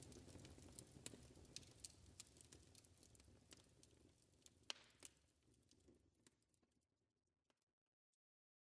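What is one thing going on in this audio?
A wood fire crackles and pops, then fades away.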